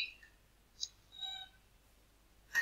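A robot beeps with a short electronic tone.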